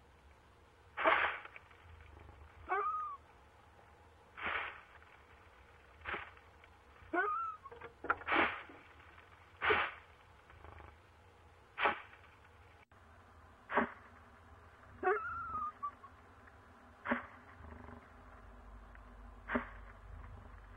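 An owl gives harsh, hissing screeches again and again, close by.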